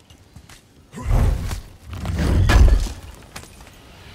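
A heavy stone chest lid scrapes and slams open with a loud thud.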